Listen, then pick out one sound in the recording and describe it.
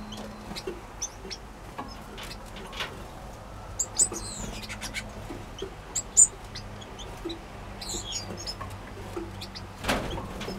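Small birds chirp and tweet close by.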